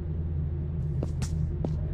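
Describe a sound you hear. Footsteps tap on a hard metal floor.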